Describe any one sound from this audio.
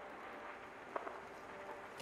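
A spinning saw blade whines.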